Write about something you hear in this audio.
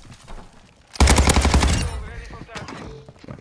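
Gunfire rattles in rapid bursts, close by.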